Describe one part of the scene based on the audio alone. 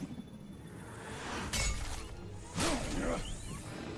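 A grappling line shoots out with a sharp whoosh.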